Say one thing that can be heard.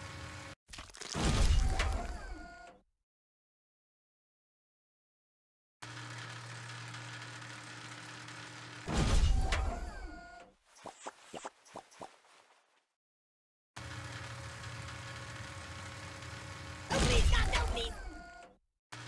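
A heavy press slams down with a loud crushing thud.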